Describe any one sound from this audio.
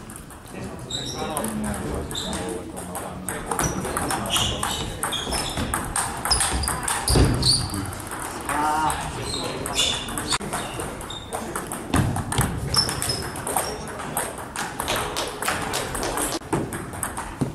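Young people chatter in a large echoing hall.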